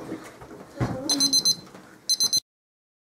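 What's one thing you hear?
A digital timer beeps repeatedly.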